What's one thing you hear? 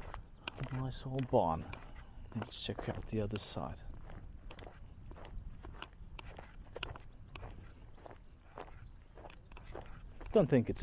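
Footsteps crunch steadily over dry grass outdoors.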